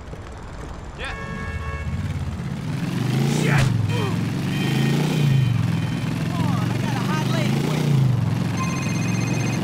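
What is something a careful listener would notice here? A motorcycle engine rumbles and revs as it rides along.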